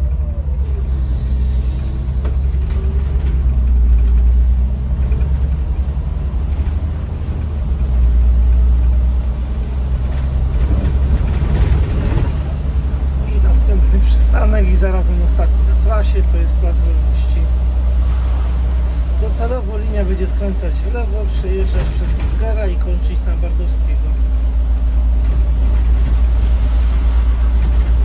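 A bus engine hums low and steady as the bus drives.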